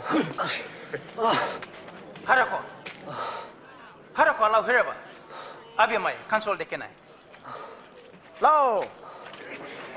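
A man cries out and groans in distress.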